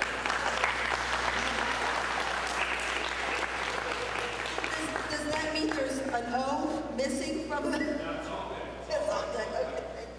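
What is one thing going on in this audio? A woman laughs into a microphone.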